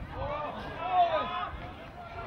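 A football is kicked with a thud on a grass field.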